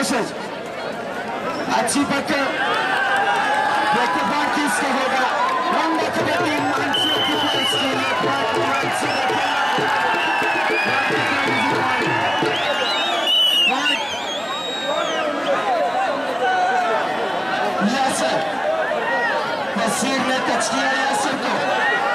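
A large outdoor crowd chatters and shouts loudly.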